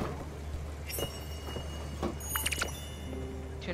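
Bright sparkling chimes ring out.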